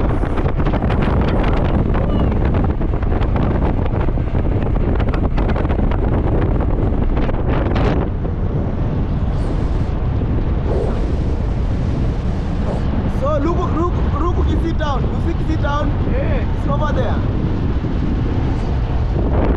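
Wind buffets loudly throughout.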